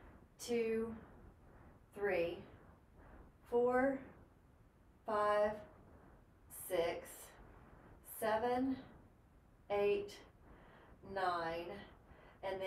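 A woman speaks calmly in short, evenly spaced phrases.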